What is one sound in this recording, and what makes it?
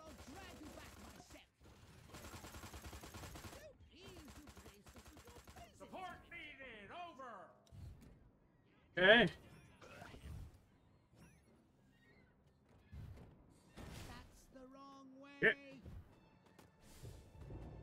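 Gunfire and energy blasts crackle in a video game battle.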